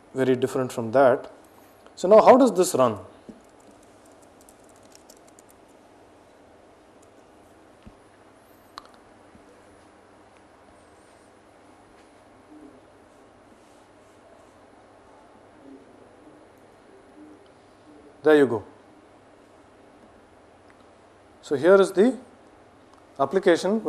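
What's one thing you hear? A young man speaks calmly into a clip-on microphone, in short bursts with long pauses.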